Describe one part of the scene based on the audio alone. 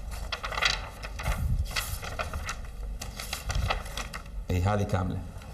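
Paper pages rustle as they are leafed through.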